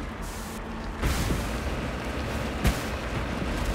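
A heavy vehicle lands with loud thuds after jumps.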